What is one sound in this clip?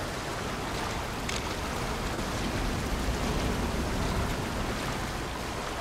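Footsteps wade and splash through water.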